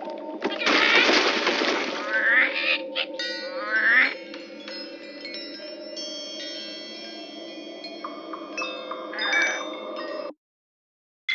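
Twinkly game music plays with small chimes and jingles.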